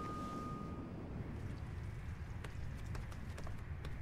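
A woman walks barefoot across a floor with soft footsteps.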